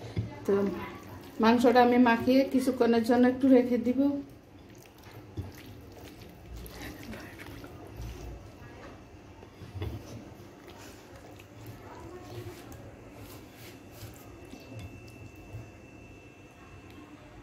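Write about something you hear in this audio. Hands squelch and knead wet, marinated meat.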